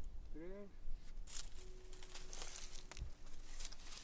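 A blade scrapes and cuts into a thick plant leaf.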